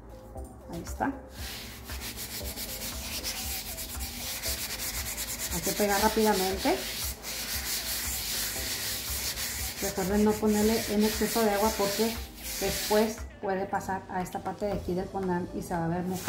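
Hands rub and smooth soft dough on a counter.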